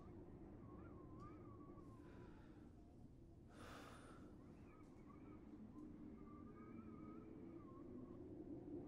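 A young man speaks quietly into a headset microphone.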